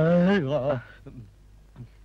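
A man speaks cheerfully close by.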